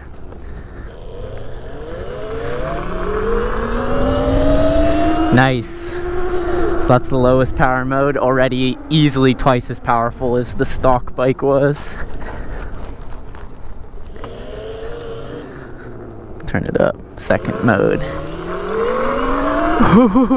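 An electric motor whines, rising in pitch as a small bike speeds up.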